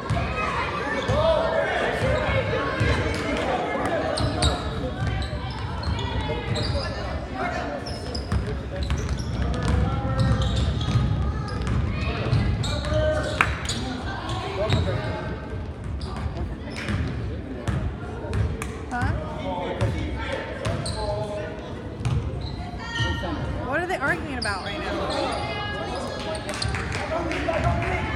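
Young boys shout and call out to each other.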